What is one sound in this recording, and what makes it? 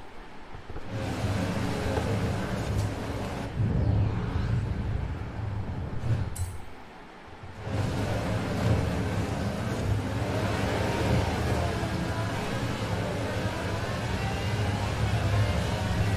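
A sports car engine roars loudly and revs up and down.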